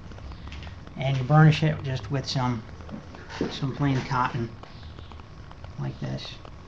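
A man speaks close by in a calm voice.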